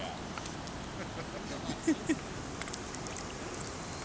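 A small fish splashes at the water's surface.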